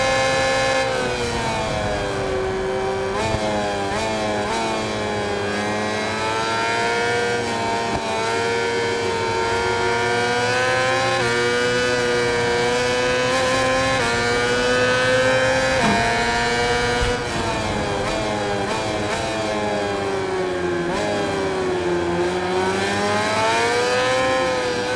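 A motorcycle engine screams at high revs, rising and falling in pitch as it shifts gears and slows for corners.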